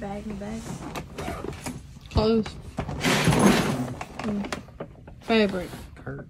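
Latches on a suitcase click.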